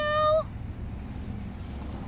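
Leaves rustle softly as a hand pulls at a plant stem.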